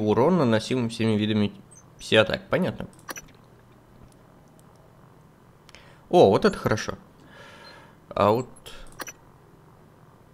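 Short electronic menu clicks sound as selections change.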